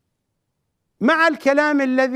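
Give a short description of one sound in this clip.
A middle-aged man speaks forcefully into a microphone.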